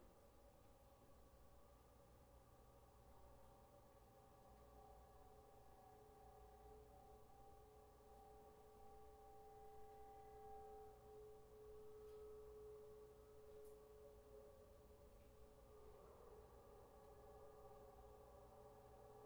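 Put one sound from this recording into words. Sustained electronic tones drone steadily and slowly shift in pitch.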